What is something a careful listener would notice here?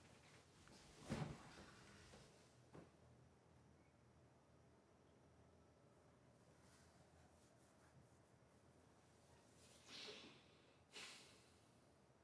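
A young man sobs and breathes heavily, close by.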